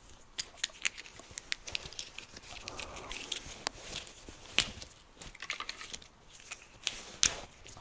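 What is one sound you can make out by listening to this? Small plastic parts click and rattle between fingers.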